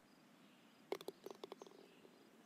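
A golf ball rattles into the cup.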